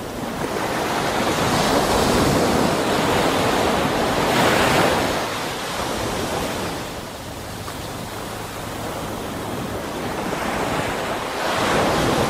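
Water rushes and bubbles around a swimming diver.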